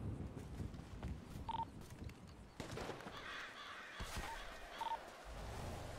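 A rifle fires a single sharp shot.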